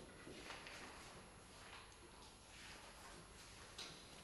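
A sheet music page rustles as it is turned.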